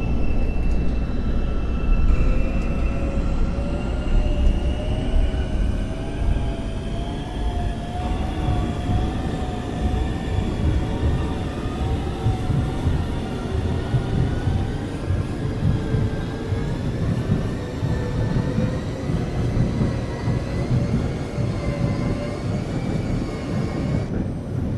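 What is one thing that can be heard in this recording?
A train's electric motor whines, rising and falling in pitch.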